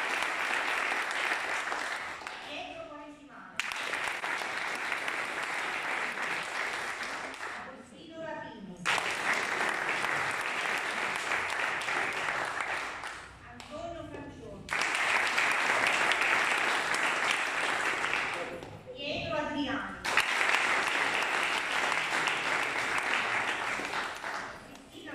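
An audience applauds loudly in bursts.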